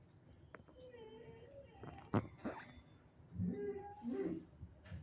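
A dog whimpers softly in its sleep.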